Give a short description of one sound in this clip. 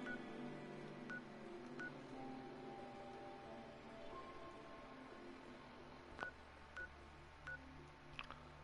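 Short electronic blips sound several times.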